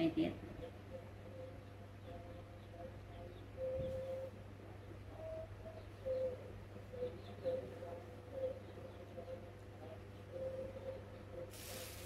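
A baby monkey squeaks softly now and then.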